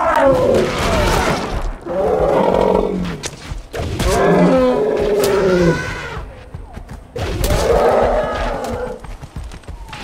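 A mammoth bellows and groans loudly, close by.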